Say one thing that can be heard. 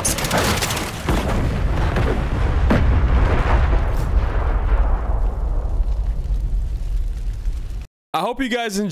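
An explosion roars with a deep rumble.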